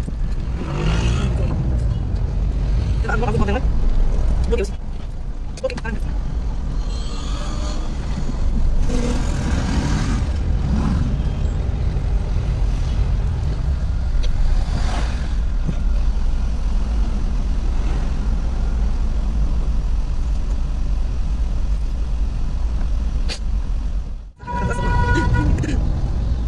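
Traffic rumbles along a city street outside.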